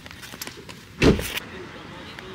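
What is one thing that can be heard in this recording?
A car door thuds.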